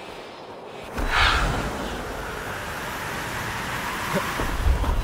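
A magical burst whooshes and rumbles loudly.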